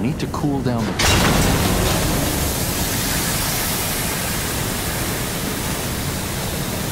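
Steam bursts out and hisses loudly and steadily.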